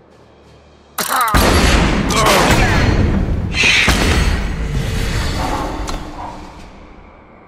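A game's spell effect blasts and crackles loudly, then fades away.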